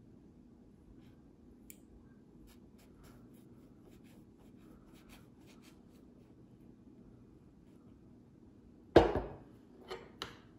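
A knife cuts softly through pancakes.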